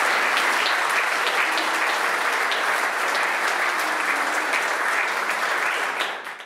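An audience applauds steadily in a large room.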